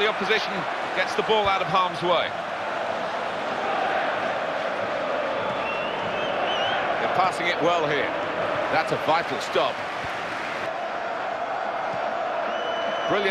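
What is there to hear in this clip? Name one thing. A stadium crowd murmurs and roars steadily in the background.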